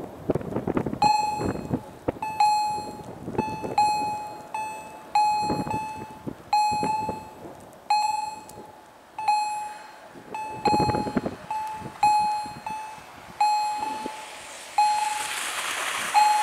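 A level crossing bell rings in steady repeated strokes.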